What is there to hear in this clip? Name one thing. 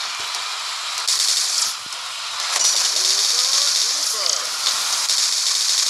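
Game weapon shots fire in quick bursts.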